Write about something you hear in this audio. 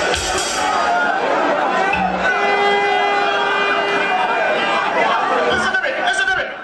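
Music with keyboards plays loudly over loudspeakers.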